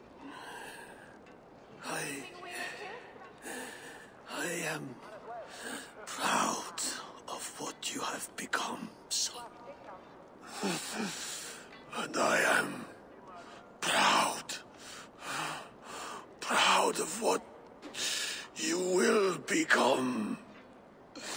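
An elderly man speaks weakly and slowly, close by.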